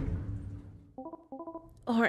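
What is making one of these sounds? Short electronic blips chirp in quick bursts.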